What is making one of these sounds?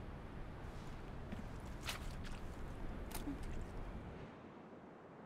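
Wind rumbles low outdoors.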